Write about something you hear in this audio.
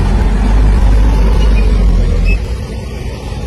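A heavy truck engine rumbles loudly nearby.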